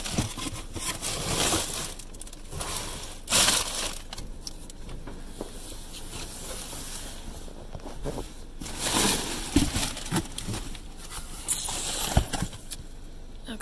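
Plastic wrap and cardboard rustle and crinkle close by.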